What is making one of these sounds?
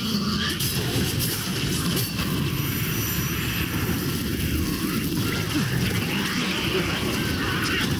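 Creatures growl and shriek as they are struck.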